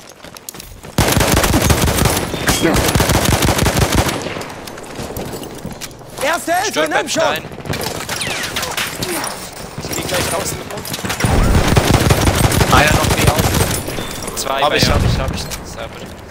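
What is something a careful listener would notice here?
Rifle shots fire in rapid bursts with loud booming blasts.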